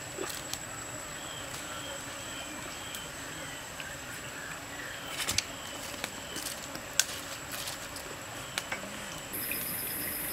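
Embers crackle softly under a grill.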